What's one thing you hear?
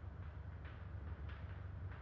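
Glassware clinks softly on a bench.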